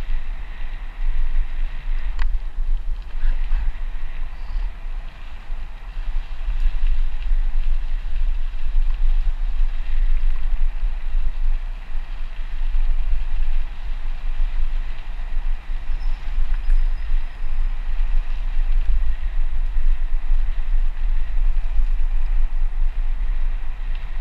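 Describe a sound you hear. Wind rumbles heavily across a microphone.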